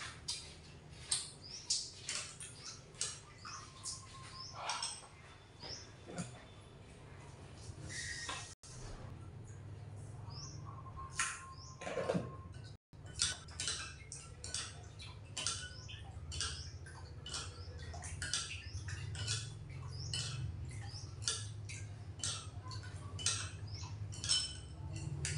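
A knife taps and clicks sharply on a board.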